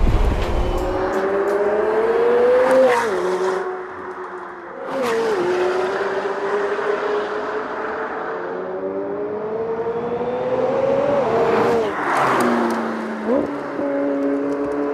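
A sports car engine snarls in the distance, rising and falling as the car speeds around corners.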